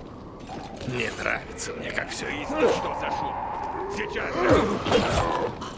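Blows thud as a club strikes zombies.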